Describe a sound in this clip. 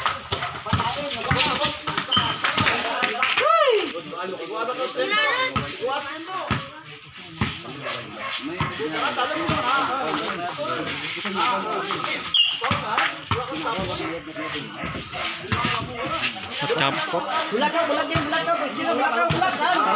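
A basketball bounces on hard concrete.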